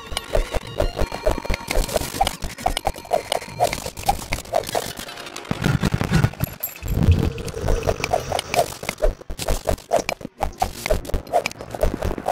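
A pickaxe chips at rock with quick, repeated taps.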